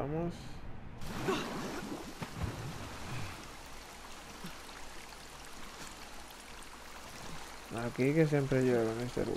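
Water swishes and laps as a person swims.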